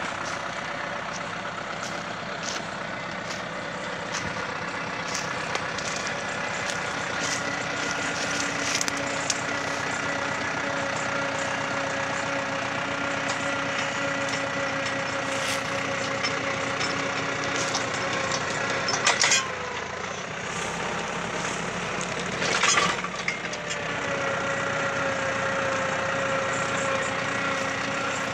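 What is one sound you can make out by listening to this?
A post hole auger grinds and churns into dry soil.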